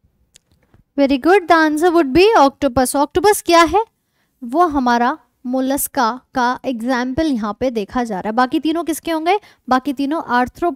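A young woman speaks with animation into a nearby microphone.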